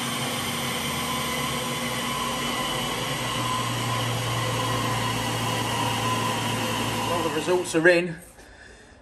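A small engine runs hard at a steady high speed, then cuts out.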